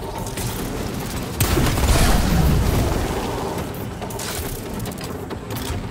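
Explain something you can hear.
An energy weapon charges and whooshes.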